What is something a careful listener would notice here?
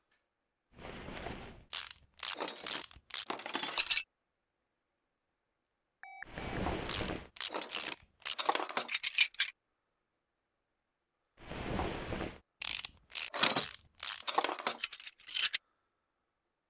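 A ratchet wrench whirs and clicks in quick bursts as bolts are loosened.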